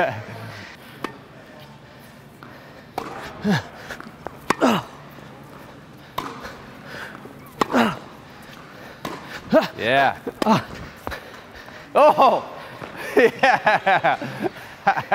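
A tennis ball is struck with a racket again and again in a large echoing hall.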